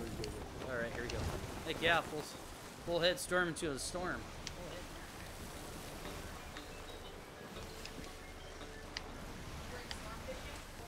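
Wind blows through a ship's sails.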